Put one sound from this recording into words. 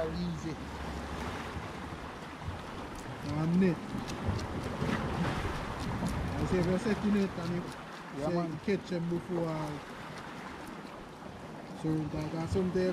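A man speaks nearby in a relaxed, animated way.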